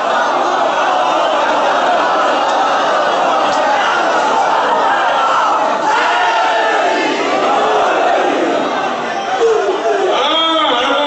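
A crowd chants and cries out together.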